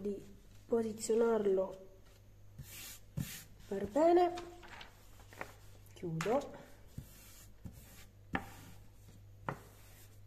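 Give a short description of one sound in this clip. Hands smooth and rub over paper.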